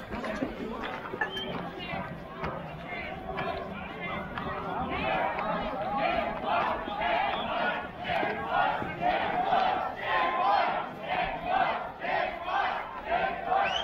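A crowd of people chants loudly in rhythm outdoors, growing louder.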